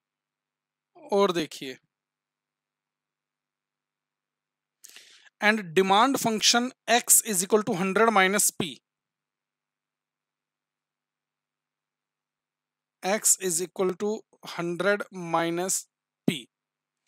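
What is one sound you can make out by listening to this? A man speaks calmly into a close microphone, explaining in short bursts with pauses.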